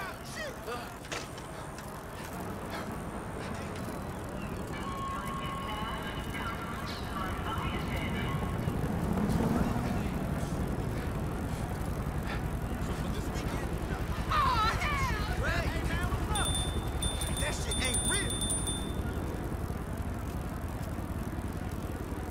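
Bicycle tyres rumble over wooden boards.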